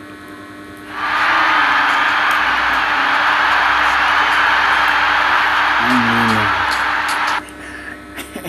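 A crowd roars steadily.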